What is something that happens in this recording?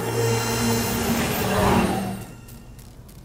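An energy orb hums and crackles with a loud magical buzz.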